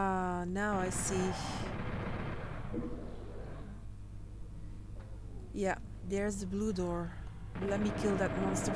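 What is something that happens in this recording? A shotgun fires loudly in a video game.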